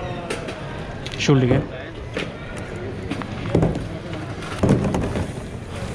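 Plastic trays clatter and knock against each other.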